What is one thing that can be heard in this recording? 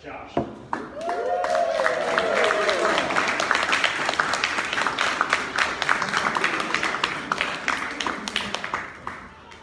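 A crowd in a room claps its hands.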